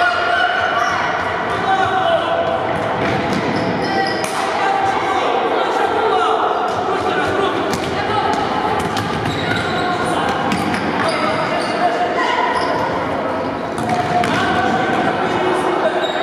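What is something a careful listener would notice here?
Young players shout to each other across a large echoing hall.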